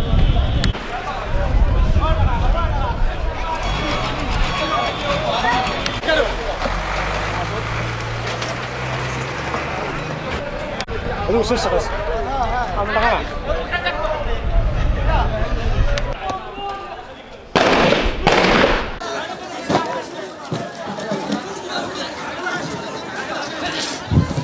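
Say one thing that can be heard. Men shout and call out in a street outdoors.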